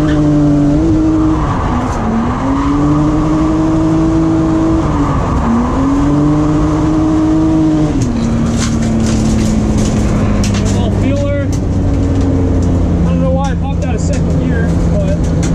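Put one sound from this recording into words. A car engine roars loudly, revving up and down.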